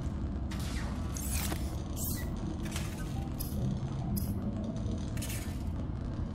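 Soft electronic swishes sound as a menu opens and items are picked.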